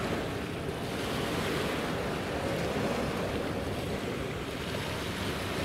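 A large ship's engine rumbles low and steady as the ship passes by.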